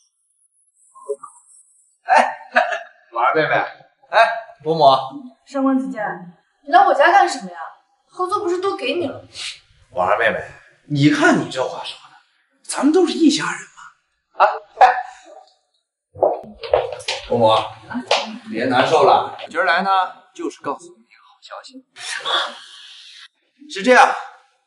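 A young man talks cheerfully and teasingly, close by.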